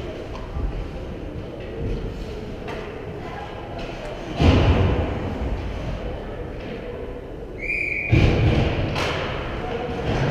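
Skate blades scrape and hiss on ice in a large echoing rink.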